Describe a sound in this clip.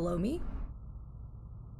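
A young woman speaks briefly into a microphone.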